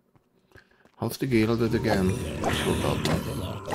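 A creature cries out as it is struck in a fight.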